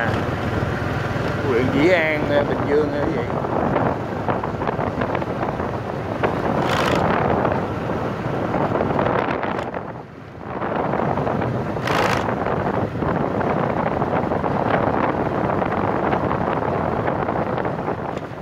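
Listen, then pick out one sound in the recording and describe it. Tyres rumble steadily over a rough road.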